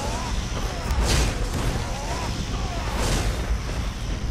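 A crackling magical blast whooshes loudly.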